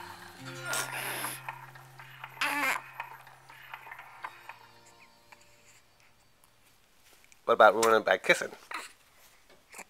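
A baby coos and babbles up close.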